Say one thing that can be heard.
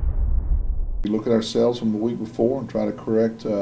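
A middle-aged man speaks calmly and clearly into a microphone.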